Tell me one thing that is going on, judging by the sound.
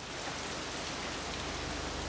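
Rain patters on a water surface.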